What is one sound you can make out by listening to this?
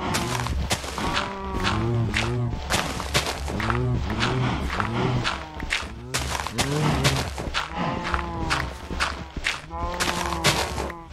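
A shovel crunches through dirt in a video game.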